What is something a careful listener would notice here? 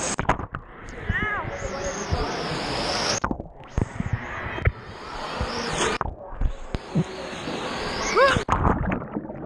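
Children shout and squeal with high voices nearby, echoing in a large hall.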